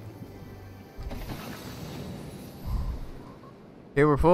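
A treasure chest opens with a shimmering jingle.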